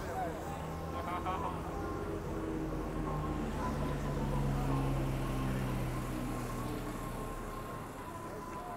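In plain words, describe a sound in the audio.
A bus engine roars as it pulls away close by.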